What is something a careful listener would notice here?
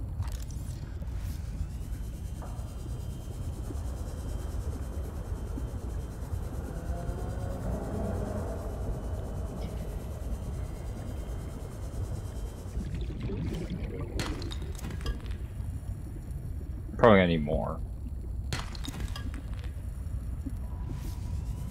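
A small underwater vehicle hums with a low, steady drone.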